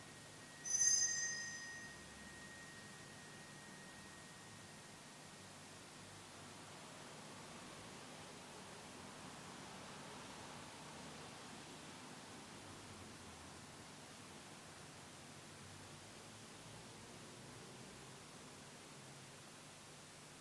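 A man murmurs prayers quietly in an echoing hall.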